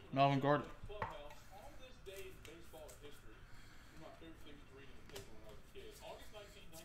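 Cardboard cards slide and rustle in a hand.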